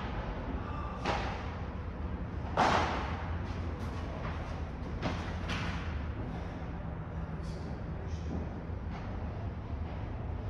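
Sneakers squeak and shuffle on a court.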